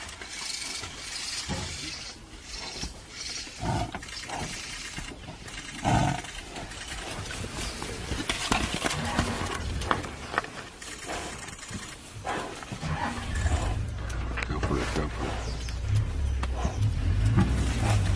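A buffalo's hooves thud and scuff on sandy ground.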